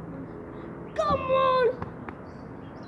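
A child shouts from a distance outdoors.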